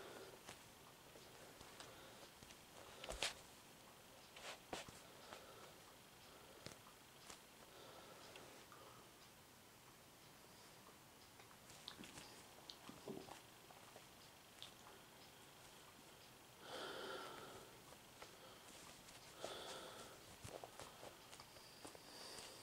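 Toes in a sock rub softly against a wooden floor.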